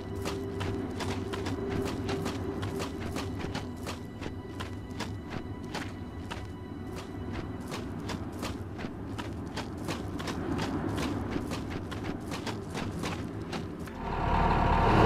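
Footsteps crunch steadily on rough stone.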